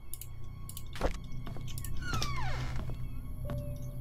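A wooden door creaks open indoors.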